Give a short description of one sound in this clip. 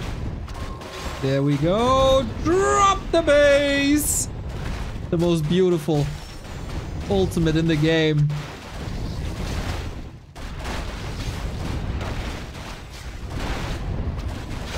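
Weapons clash and magic blasts crackle in a busy battle.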